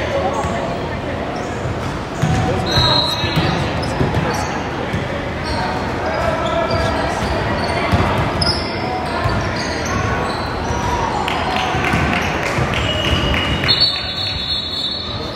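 Children shout and call out during play.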